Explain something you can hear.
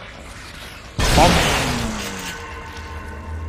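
A shotgun fires with a loud blast that rings out.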